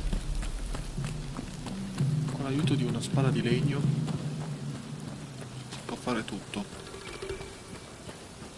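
Footsteps tread on a stone path.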